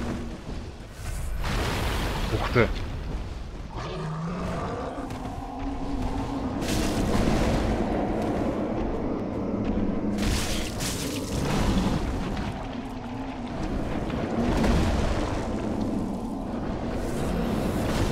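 Fire bursts with a roaring whoosh.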